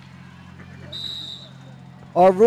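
A referee's whistle blows briefly outdoors.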